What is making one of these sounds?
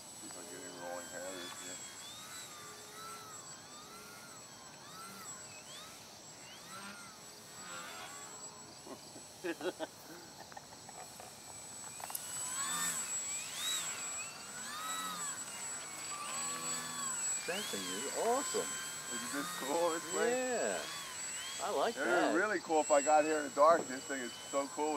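A radio-controlled model airplane's motor whines overhead, rising and falling in pitch as it loops and dives.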